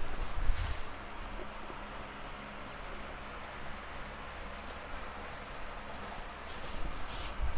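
Silk fabric rustles and swishes as it is spread out.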